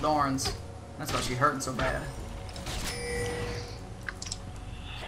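Fantasy spells whoosh and crackle in a fight.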